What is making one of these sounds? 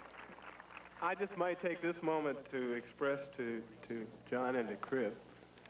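A man speaks through a microphone, heard over loudspeakers with an echo outdoors.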